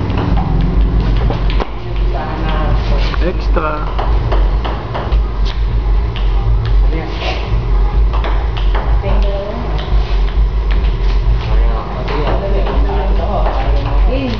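A table tennis ball bounces on a table with light taps.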